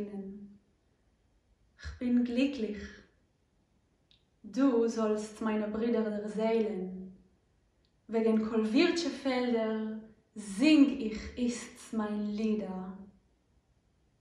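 A young woman sings close to a microphone.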